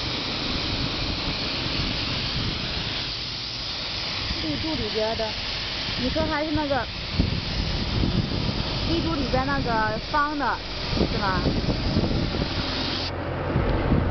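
A compressed-air spray gun hisses as it sprays paint.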